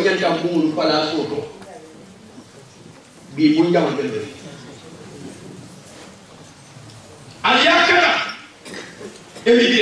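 A group of women sing out together in loud bursts, with pauses between.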